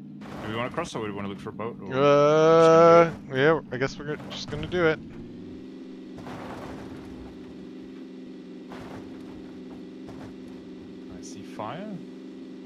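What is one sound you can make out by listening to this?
A car engine drones at speed.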